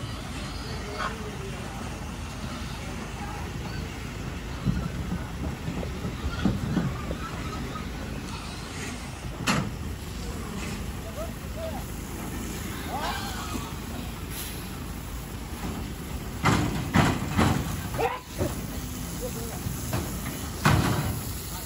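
Pigs squeal inside a truck.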